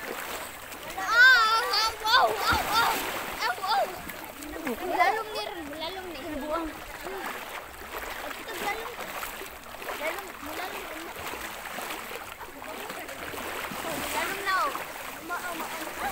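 A young woman talks close by, casually.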